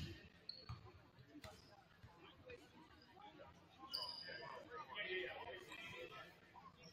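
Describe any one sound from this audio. A group of young players talk and shout together in a large echoing gym.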